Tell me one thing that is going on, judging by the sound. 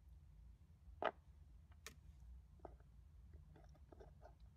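A plastic piece clicks as fingers fit it into place.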